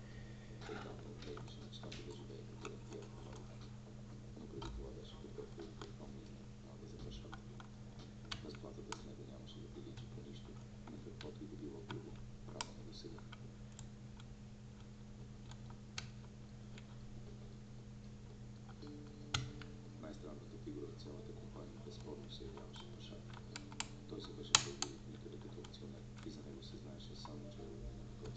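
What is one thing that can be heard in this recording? Pins in a lock click sharply now and then.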